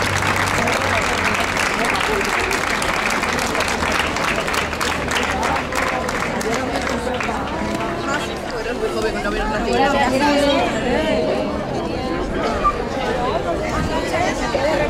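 A crowd of women chatters nearby.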